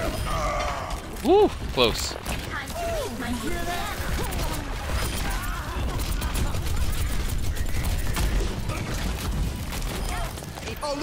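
A video game weapon fires rapid energy shots.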